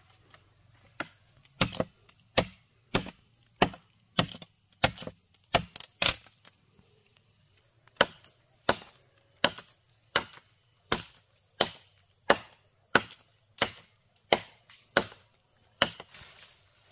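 A machete chops into wood with sharp, regular knocks.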